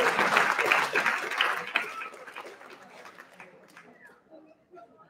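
An audience applauds in a large hall, then the clapping fades.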